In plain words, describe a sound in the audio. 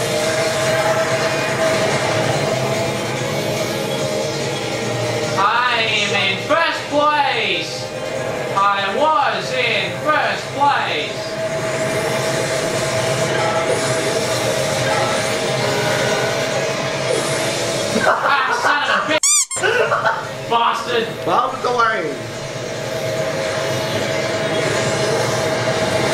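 Racing kart engines hum steadily through a television loudspeaker.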